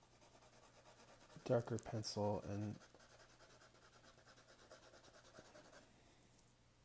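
A pencil scratches quickly back and forth on paper.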